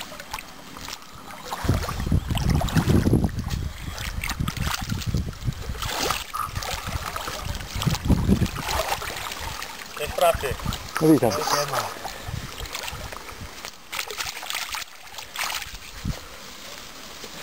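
Water splashes as a man lets a fish go in shallow water.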